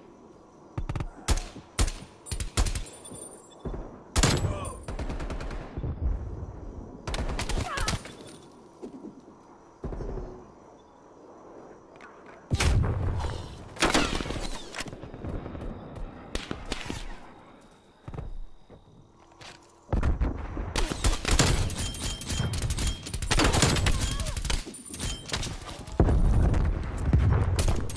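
Gunshots crack in short, rapid bursts.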